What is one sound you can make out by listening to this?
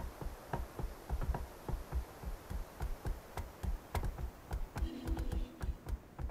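Footsteps thud quickly and steadily on a dirt path.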